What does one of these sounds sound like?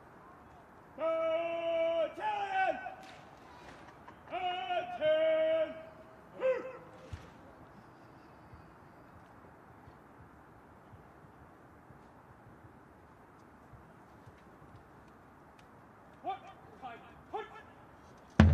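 A man shouts drawn-out commands outdoors, echoing off buildings.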